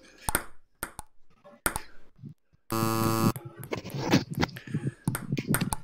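A ping-pong ball clicks sharply against paddles and a table.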